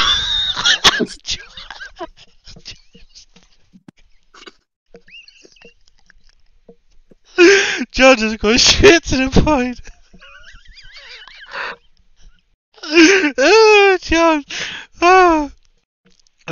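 Young men laugh loudly over an online call.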